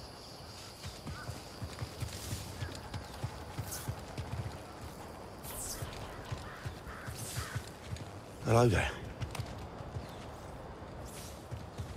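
Footsteps run over dirt.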